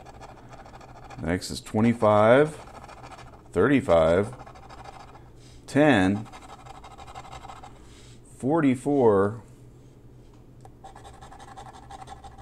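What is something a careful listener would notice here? A coin scrapes across a scratch card.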